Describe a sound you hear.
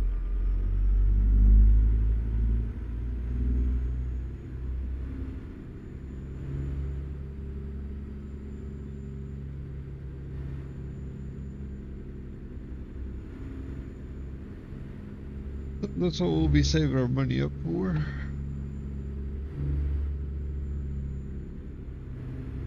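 A truck engine rumbles low and steady as the truck drives slowly.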